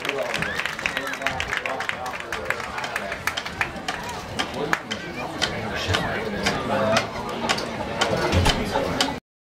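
A marching band plays outdoors with drums beating.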